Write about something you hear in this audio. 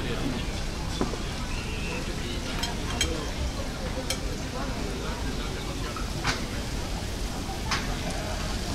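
Dishes and cutlery clink at tables.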